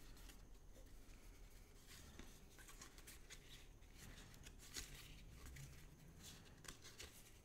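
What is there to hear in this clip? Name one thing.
Playing cards shuffle and rustle softly between fingers.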